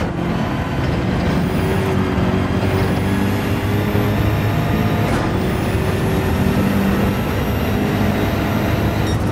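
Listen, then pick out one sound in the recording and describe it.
A racing car engine roars loudly at high revs.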